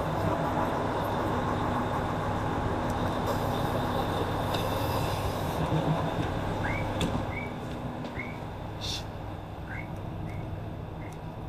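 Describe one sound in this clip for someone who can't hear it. A stopped train hums steadily, with a low drone.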